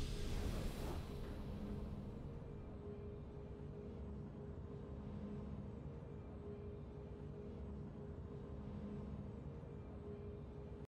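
Triumphant fanfare music from a video game plays with a bright burst at first, then holds steady.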